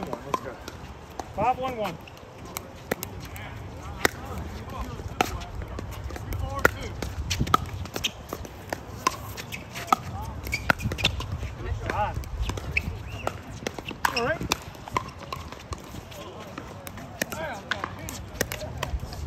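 Paddles pop sharply against a ball, over and over.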